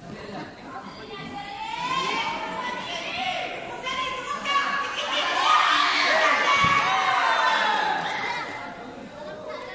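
A crowd of young people cheers and shouts loudly in an echoing hall.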